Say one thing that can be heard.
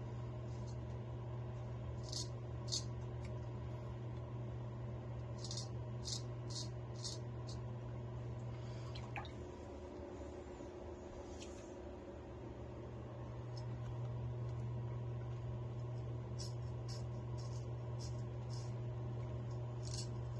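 A razor scrapes through a thick beard in short strokes.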